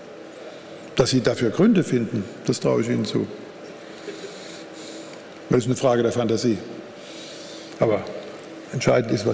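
An elderly man speaks emphatically through a microphone in a large echoing hall.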